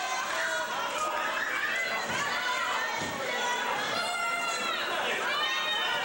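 Wrestlers' bodies thud onto a ring mat.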